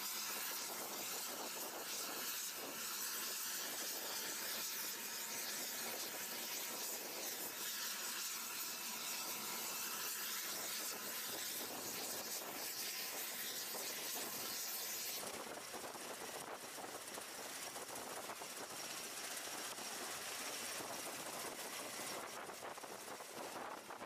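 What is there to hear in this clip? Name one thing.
Aircraft rotors whir loudly and steadily outdoors.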